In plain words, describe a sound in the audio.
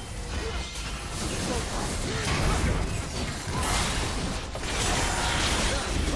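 Game spell effects crackle and burst in quick succession.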